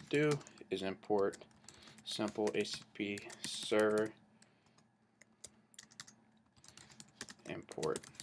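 Keys clack on a computer keyboard.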